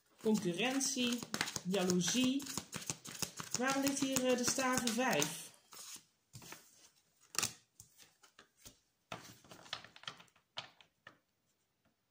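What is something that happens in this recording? Cards are shuffled with quick, soft clicks.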